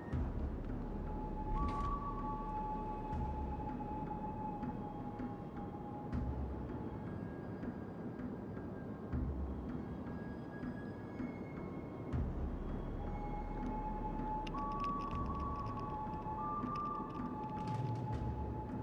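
A large ship's engine rumbles steadily.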